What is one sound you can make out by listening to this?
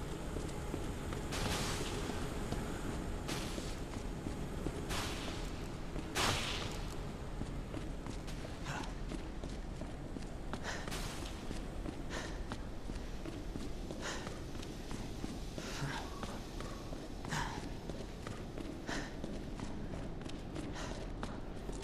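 Footsteps thud and clang on a metal floor.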